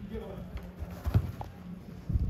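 A ball is kicked with a dull thud in a large echoing hall.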